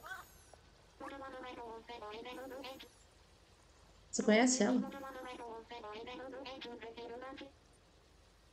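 A young woman speaks casually into a headset microphone.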